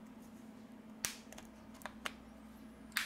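A phone's casing clicks softly as it is pried open.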